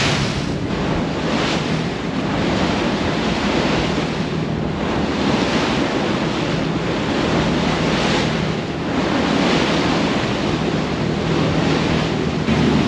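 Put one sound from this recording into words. Waves churn and rush in the wake of a boat.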